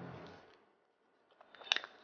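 A young woman chews and slurps food close by.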